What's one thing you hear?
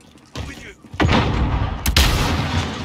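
A smoke grenade bursts and hisses loudly.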